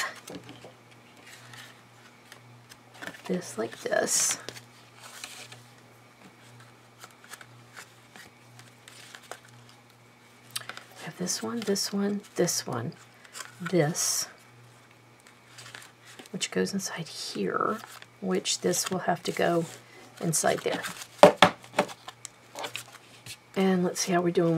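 Paper cards rustle and flap.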